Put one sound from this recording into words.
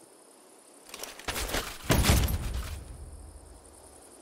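A rifle rattles as it is picked up.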